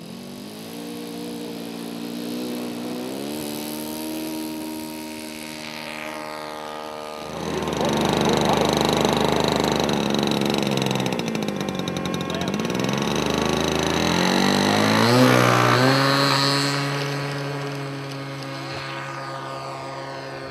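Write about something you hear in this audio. A small model airplane engine buzzes loudly, its pitch rising and falling as it revs.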